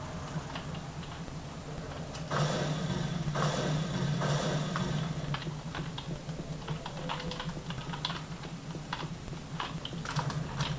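Keys clatter on a keyboard in quick taps.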